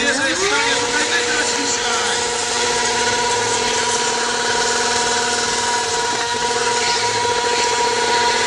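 A motorcycle engine revs up quickly and then holds a high, steady whine.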